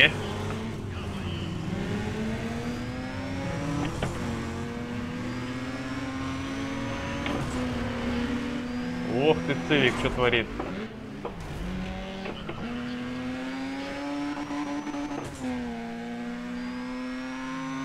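A racing car engine drones loudly and shifts gears.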